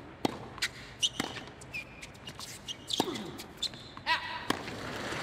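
Shoes squeak on a hard court.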